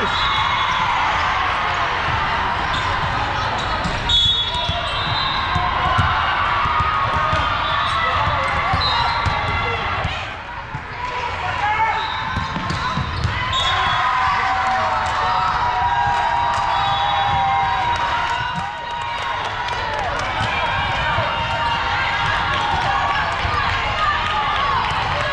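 A crowd of young girls chatters and shouts across a large echoing hall.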